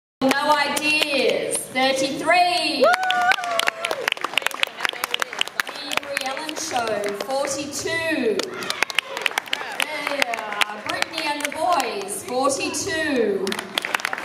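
A crowd of girls claps rapidly.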